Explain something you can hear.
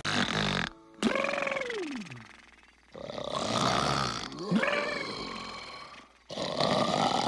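A man snores loudly in long drawn-out breaths.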